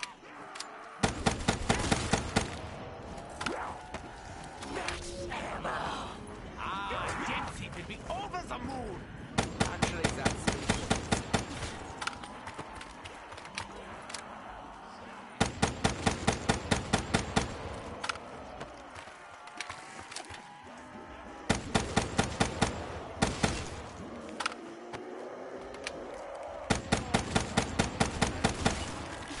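Rapid gunfire bursts out in short volleys.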